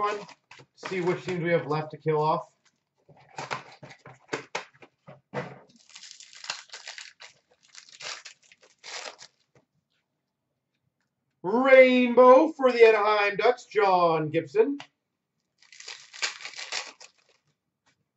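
Foil card wrappers crinkle and rustle in hands.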